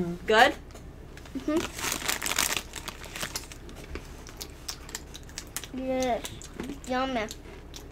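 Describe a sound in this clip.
Crunchy snacks crunch.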